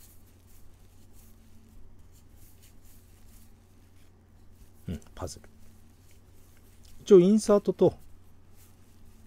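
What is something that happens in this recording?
Playing cards rustle and flick softly against each other.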